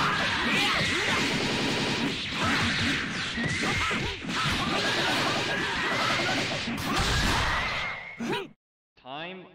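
Rapid punches and energy blasts crackle and boom in a fast fight.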